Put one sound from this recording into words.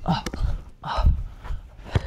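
A ball clangs off a basketball hoop.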